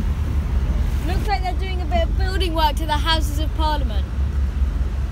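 A boy speaks with animation close to the microphone.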